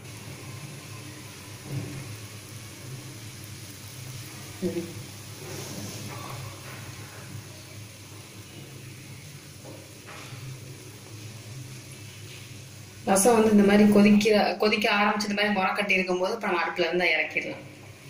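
A pot of soup bubbles and simmers gently.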